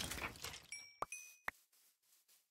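A sword strikes a zombie with sharp hits.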